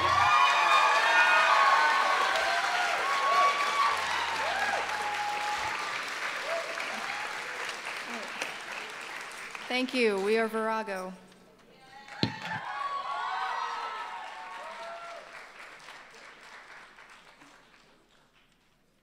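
An audience applauds and cheers in a large hall, slowly fading away.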